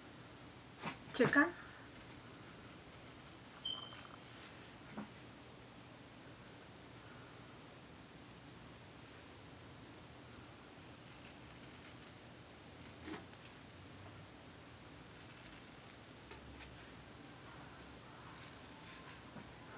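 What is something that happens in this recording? A razor comb scrapes through hair close by.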